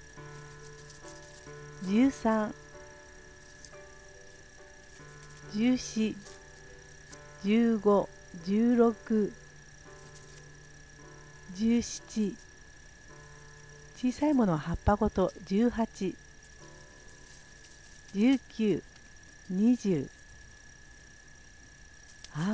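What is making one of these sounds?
Hands strip leaves from twigs with a soft rustle.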